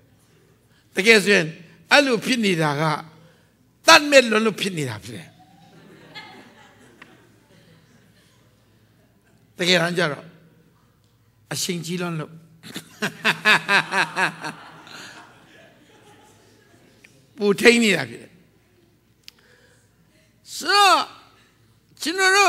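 A man preaches with animation through a microphone, his voice echoing in a large hall.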